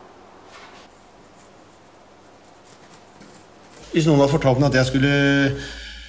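Charcoal scratches across a rough wall.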